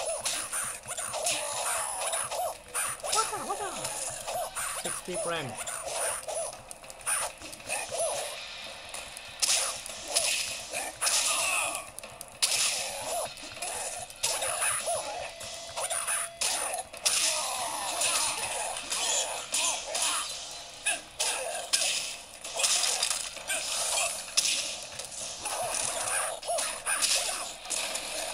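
Fighting game sound effects of punches, kicks and grunts play from a small handheld speaker throughout.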